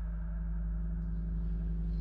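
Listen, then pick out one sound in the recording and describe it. A young woman gasps softly in fear.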